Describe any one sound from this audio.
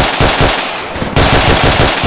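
A rifle fires a few loud shots.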